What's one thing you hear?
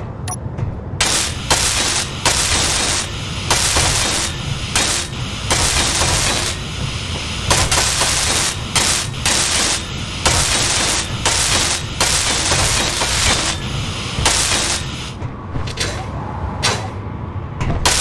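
A welding tool hisses and crackles in bursts.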